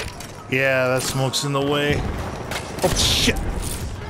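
A machine gun is reloaded with metallic clicks and clacks.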